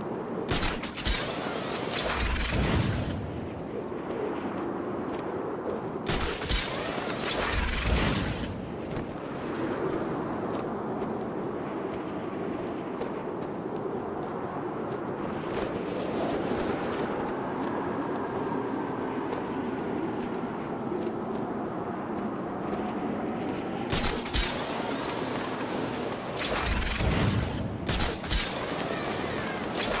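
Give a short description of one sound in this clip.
Wind rushes steadily past a gliding figure.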